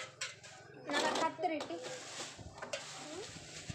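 A plastic sheet crinkles and rustles as it is handled.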